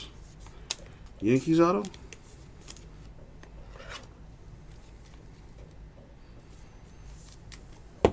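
Trading cards rustle and slide against each other in plastic sleeves.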